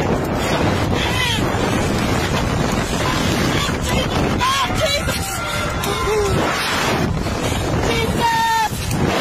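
A young woman screams and shrieks close by.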